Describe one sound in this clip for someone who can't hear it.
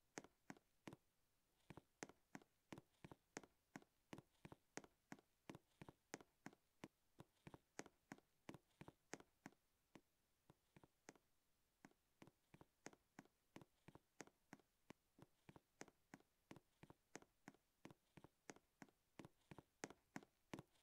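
Quick, light footsteps patter steadily as a game figure runs.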